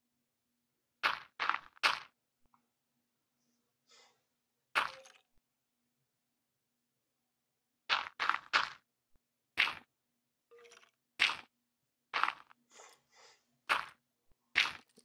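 Dirt crunches in short bursts as blocks are dug.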